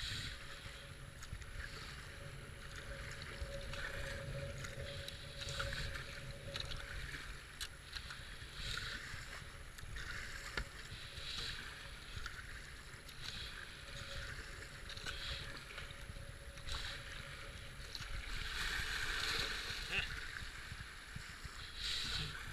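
A paddle splashes into the water with regular strokes.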